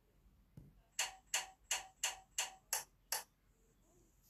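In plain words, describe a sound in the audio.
A row of switches clicks one after another in quick succession.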